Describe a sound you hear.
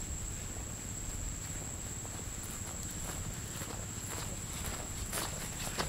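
Footsteps crunch slowly along a dirt path.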